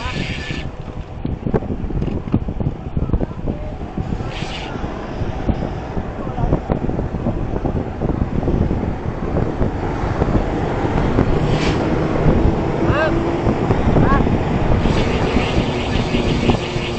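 Wind rumbles and buffets steadily past a moving bicycle.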